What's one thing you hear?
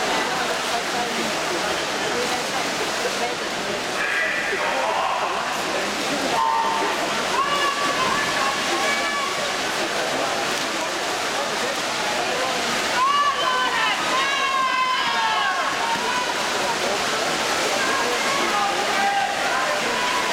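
Swimmers splash through the water doing butterfly stroke in an echoing indoor pool.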